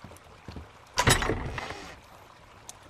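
A wooden box creaks open.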